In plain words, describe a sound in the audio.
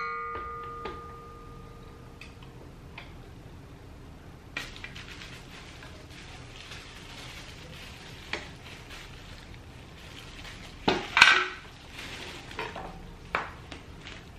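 Metal parts of a stand mixer click and clank as they are fitted together.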